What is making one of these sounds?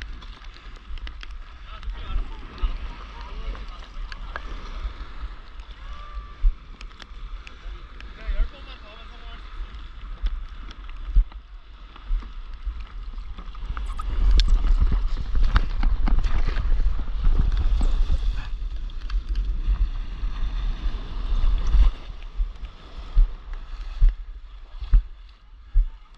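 Water laps and splashes against a surfboard.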